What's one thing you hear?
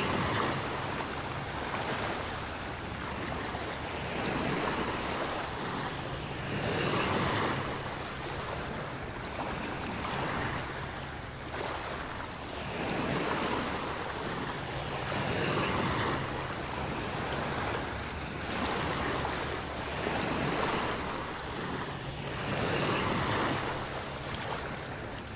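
Small waves wash gently onto the sand in a soft, repeating rhythm.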